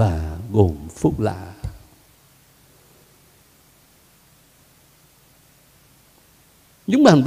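An elderly man speaks slowly and expressively through a microphone.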